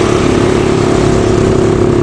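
A motorcycle engine drones as it passes close by.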